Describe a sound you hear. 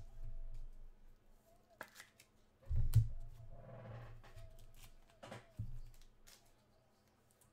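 Card packs rustle and tap against a table.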